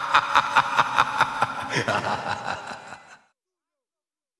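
A man sings.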